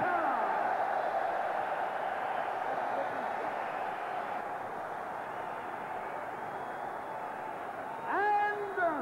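A crowd cheers and roars in a large hall, then dies down.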